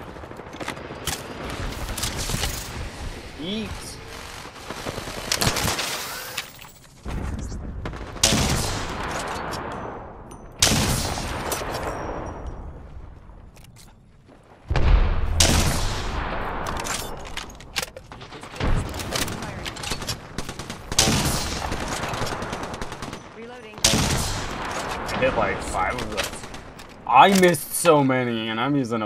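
Gunshots crack in rapid bursts, each followed by a short ringing tail.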